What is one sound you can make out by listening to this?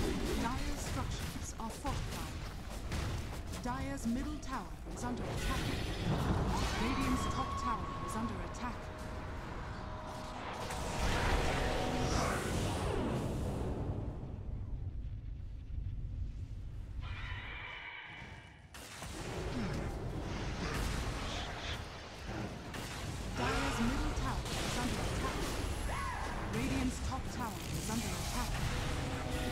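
Magic blasts whoosh and crackle in a busy fantasy battle.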